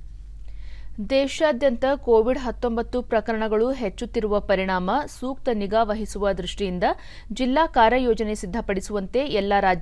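A woman reads out the news calmly through a microphone.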